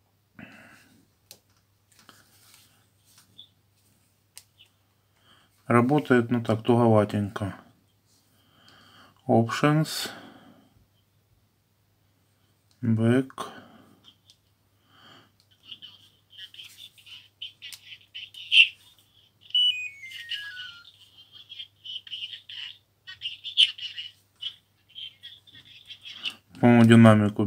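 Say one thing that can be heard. Phone keys click softly as they are pressed.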